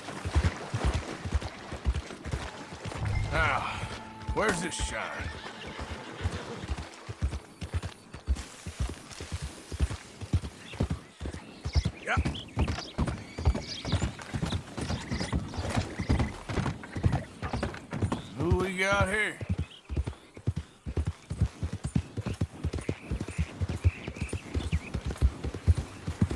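Horse hooves thud steadily at a trot.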